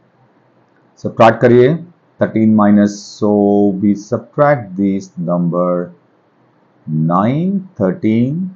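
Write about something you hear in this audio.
A man speaks calmly, explaining, close to a microphone.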